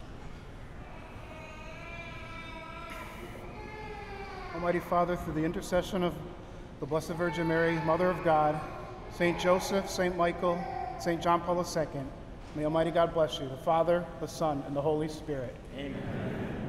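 A man chants slowly through a microphone in a large echoing hall.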